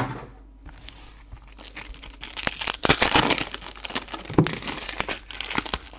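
Plastic card packs rustle and crinkle as hands shuffle them.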